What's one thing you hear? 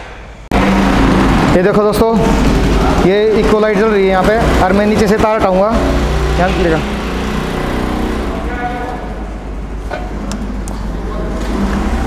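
A motorcycle engine idles with a steady low hum.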